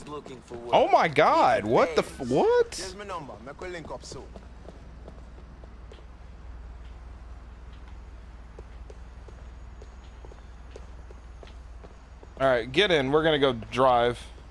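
Footsteps tap on pavement at a walking pace.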